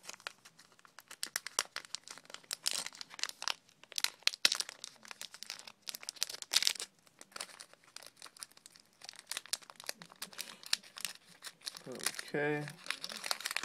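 A foil wrapper crinkles and tears as a card pack is opened.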